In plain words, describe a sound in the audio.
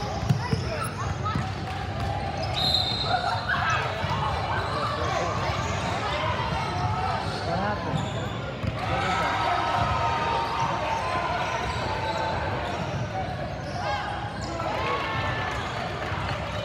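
Girls call out and shout to each other in a large echoing gym.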